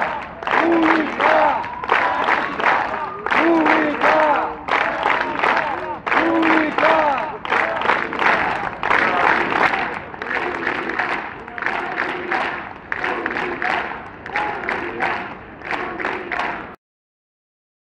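A large crowd of men and women chants loudly in rhythm outdoors.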